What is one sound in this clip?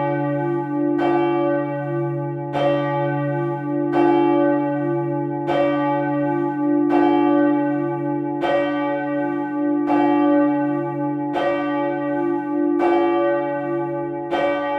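A large swinging church bell tolls, its clapper striking at an even pace, with each stroke ringing on.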